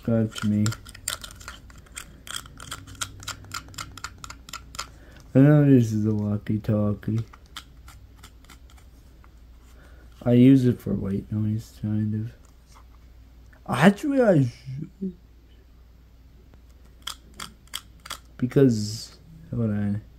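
Plastic clicks and taps as a small radio is handled.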